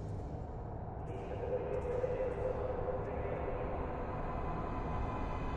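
A train rumbles closer through a tunnel, growing louder.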